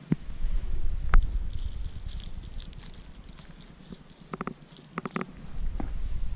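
Dry pine needles rustle and crackle under a hand.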